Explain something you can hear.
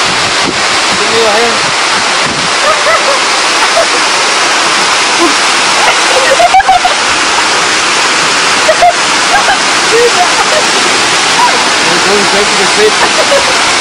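A young woman shouts and laughs with excitement.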